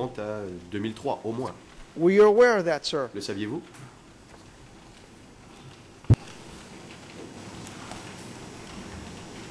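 Papers rustle in a man's hands.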